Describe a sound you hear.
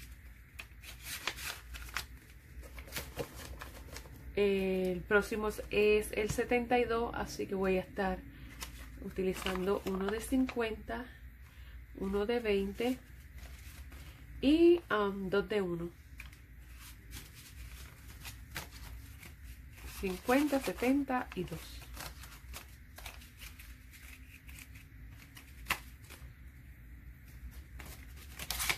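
Paper bills rustle and crinkle as hands handle them.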